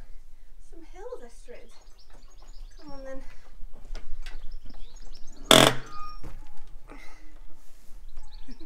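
A horse munches hay close by.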